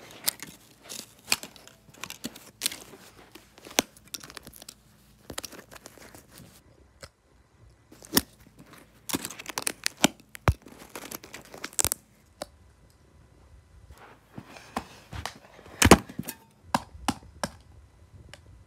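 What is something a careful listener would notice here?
Thin plastic crinkles and crackles as fingers handle it.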